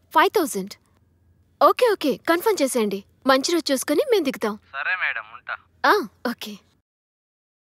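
A young woman speaks tensely into a phone, close by.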